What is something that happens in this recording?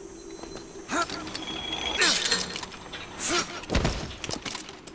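A metal hook clangs and screeches along a rail.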